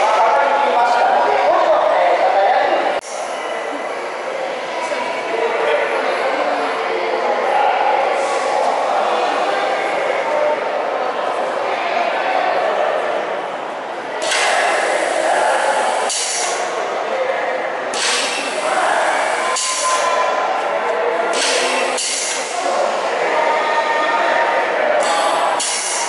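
A crowd of adults murmurs and chats nearby in a large echoing hall.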